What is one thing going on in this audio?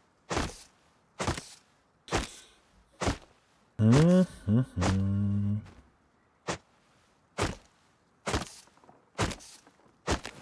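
An axe chops into a tree trunk with sharp, regular thuds.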